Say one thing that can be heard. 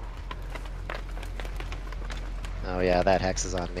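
Footsteps run over grass and rubble.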